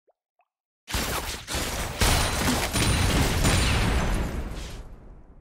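Magic blasts and impacts crash loudly during a game battle.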